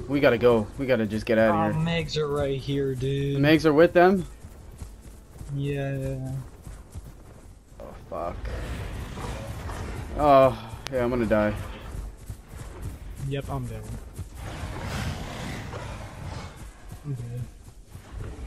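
A large creature's heavy footsteps thud through grass.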